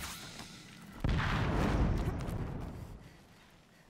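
Hands and feet scrape and scramble over rock.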